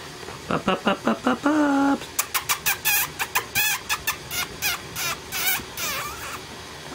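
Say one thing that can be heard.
Newborn puppies whimper and squeal close by.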